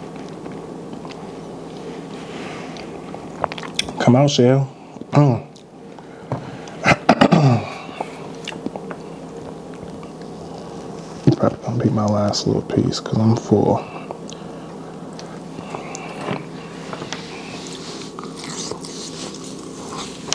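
A man chews and smacks his lips close to a microphone.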